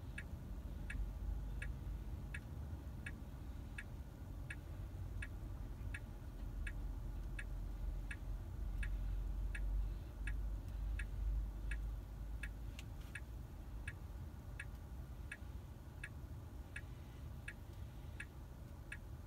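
A pedestrian crossing signal beeps in a steady, quick rhythm.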